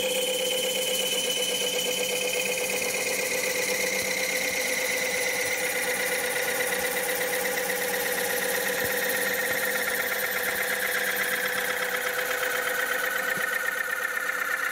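A lathe hums steadily as it spins.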